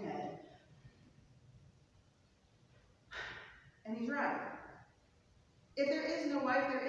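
A man speaks slowly and calmly through a microphone in a large echoing hall.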